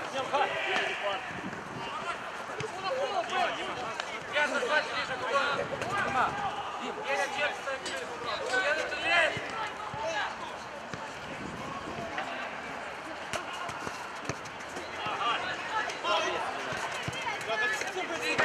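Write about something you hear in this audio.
Young men shout to each other across an open-air pitch.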